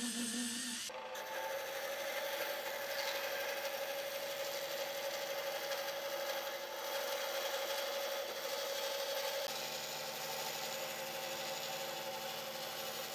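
A band saw hums and cuts through a block of wood.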